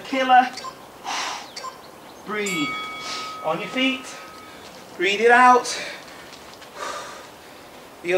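A woman breathes out heavily between words.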